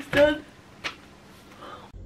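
A young woman yawns loudly.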